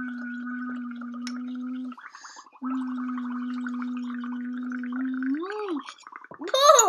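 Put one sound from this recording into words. A young girl blows through a straw, making a steady humming buzz.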